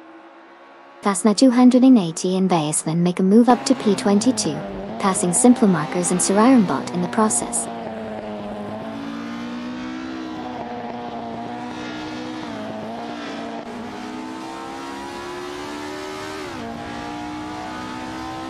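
A racing car engine roars up close, rising and falling in pitch as it changes gear.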